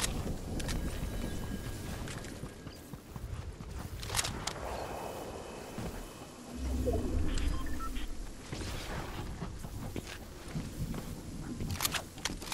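Footsteps patter quickly on the ground as a figure runs.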